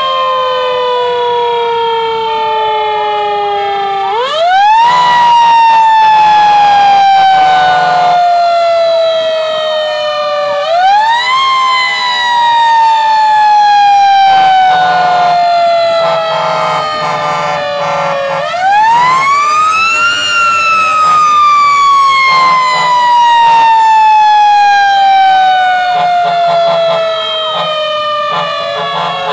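A siren wails loudly close by, rising and slowly falling again and again.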